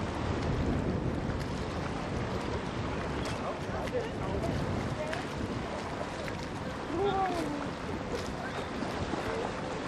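Water laps and splashes around a swimmer.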